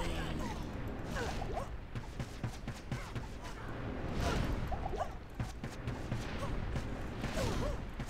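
Weapons clash and thud with repeated impacts.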